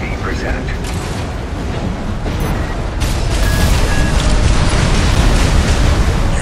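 Gunfire and explosions rumble and crack heavily.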